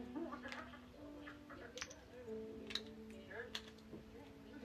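Small plastic bricks click and snap together in someone's hands.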